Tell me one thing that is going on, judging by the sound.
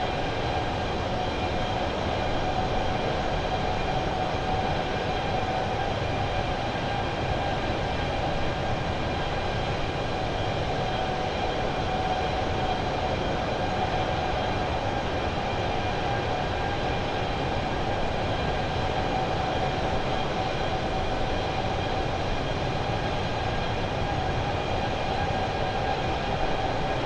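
Jet engines drone steadily with a constant roar of rushing air.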